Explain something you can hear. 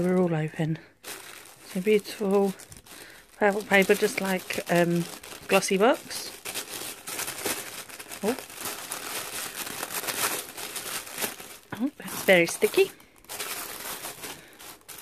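Tissue paper rustles and crinkles close by.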